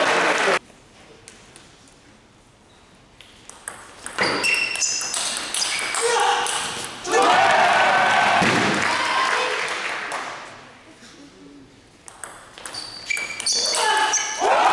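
A ping-pong ball clicks back and forth on a table and paddles in a large echoing hall.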